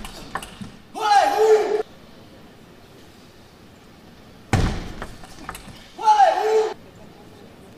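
A young man shouts loudly after a point.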